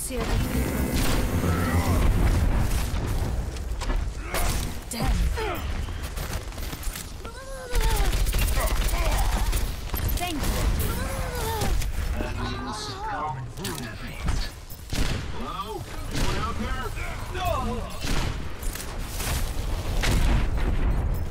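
Rapid gunfire crackles in short bursts.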